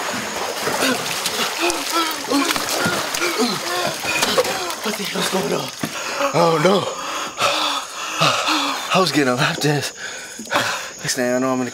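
A man gasps and pants heavily, close by.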